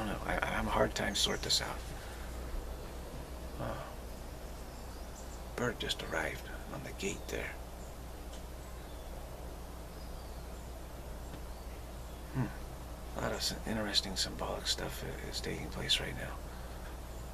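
A middle-aged man speaks calmly close to a microphone, with pauses.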